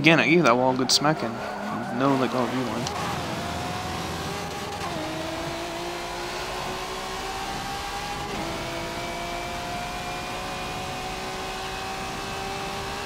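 A race car engine revs hard and rises in pitch through the gears.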